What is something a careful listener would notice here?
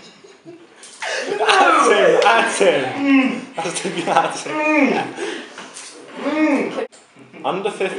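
A young man laughs loudly close by.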